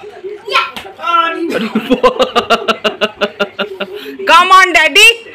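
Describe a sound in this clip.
A small child squeals and shouts excitedly close by.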